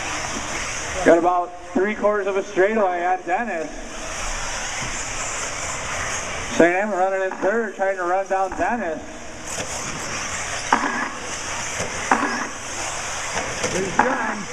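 Small electric motors of toy race cars whine as the cars speed around a track.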